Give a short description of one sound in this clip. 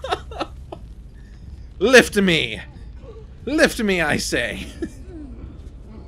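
A man laughs close to a headset microphone.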